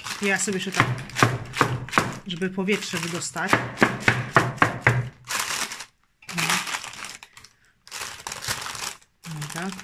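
Baking paper rustles and crinkles.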